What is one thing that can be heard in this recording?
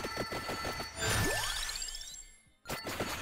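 A bright game jingle sweeps up in pitch.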